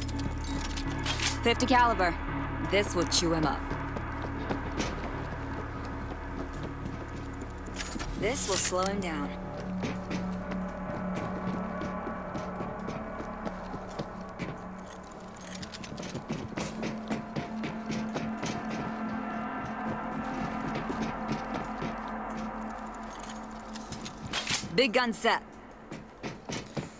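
Footsteps clank on metal walkways.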